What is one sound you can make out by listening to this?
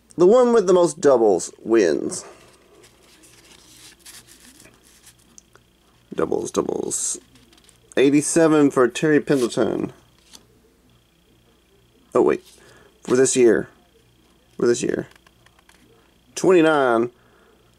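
Stiff paper cards slide and flick as they are shuffled by hand.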